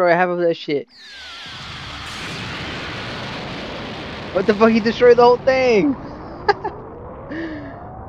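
A deep roaring blast rumbles and swells steadily.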